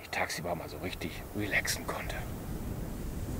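A man speaks close to the microphone.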